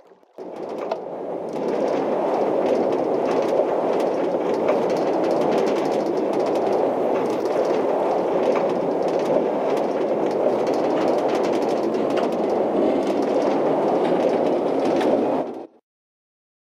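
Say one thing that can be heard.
A minecart rumbles steadily along rails.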